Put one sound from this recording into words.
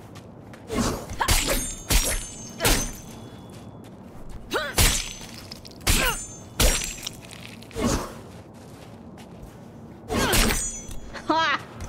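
Heavy blows of a metal pipe land with sharp thuds.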